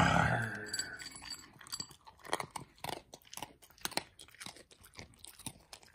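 A dog crunches and chews dry kibble close by.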